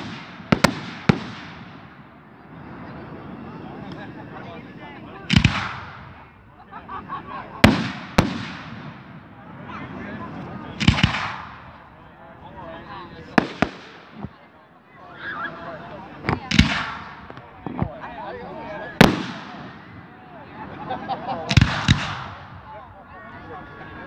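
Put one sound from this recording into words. Fireworks crackle and sizzle after bursting.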